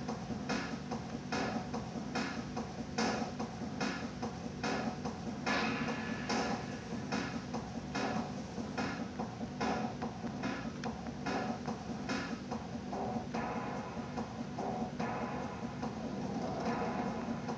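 Upbeat music with a steady beat plays through a television speaker.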